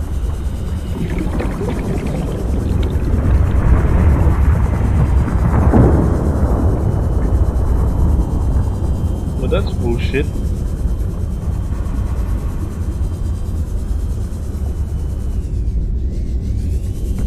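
A small submarine's motor hums underwater.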